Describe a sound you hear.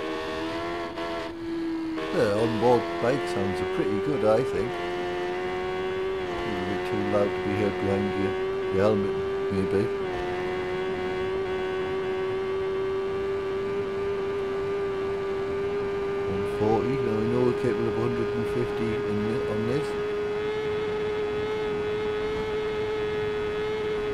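A motorcycle engine screams at high revs, briefly dropping as gears shift up.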